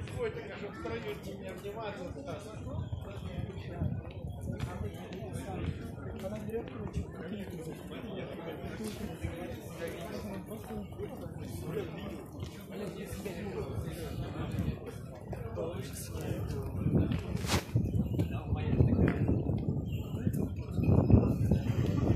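A crowd of people murmur and talk nearby.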